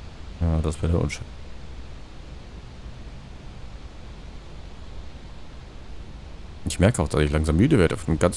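A man speaks briefly, close into a microphone.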